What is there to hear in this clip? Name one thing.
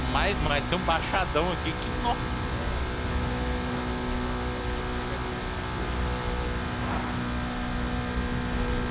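A racing car engine hums steadily.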